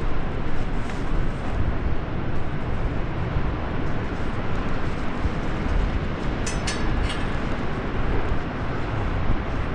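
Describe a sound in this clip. Metal clinks as a climbing clip slides on a ladder rail.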